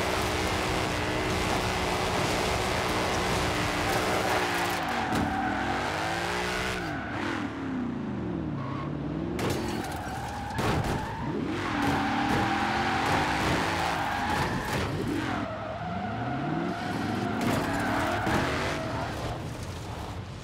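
Tyres screech as a car drifts on tarmac.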